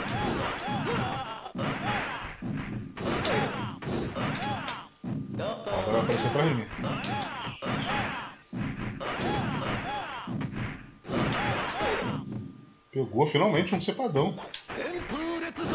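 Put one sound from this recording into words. Swords clash and slash in a fighting video game.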